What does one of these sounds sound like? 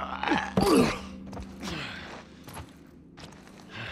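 A body thuds onto the floor.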